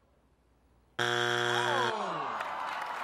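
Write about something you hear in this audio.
A buzzer sounds once, loud and steady.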